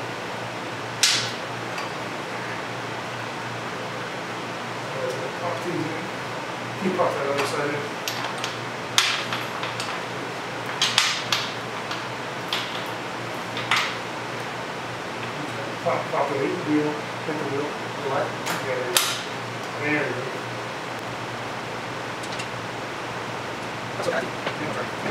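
Metal tools click and clank against a motorcycle chain.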